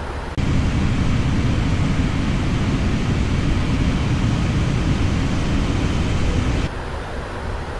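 Jet engines roar loudly and steadily.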